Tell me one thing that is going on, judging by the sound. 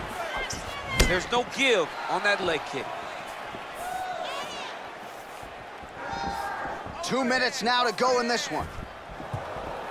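A kick lands with a sharp smack.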